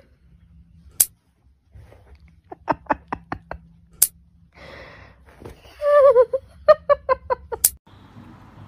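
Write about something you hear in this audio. Nail clippers snip with sharp clicks.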